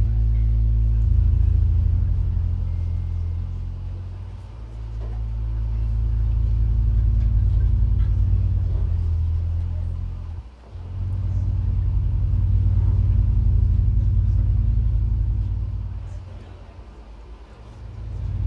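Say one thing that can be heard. Loud, deep electronic bass music throbs through loudspeakers in a large room, swelling and fading.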